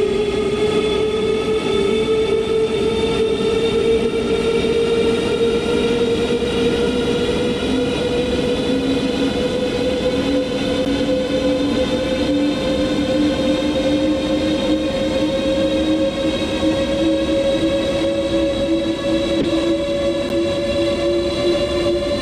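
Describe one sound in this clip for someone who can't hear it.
An electric train's motor whines, rising slowly in pitch as it speeds up.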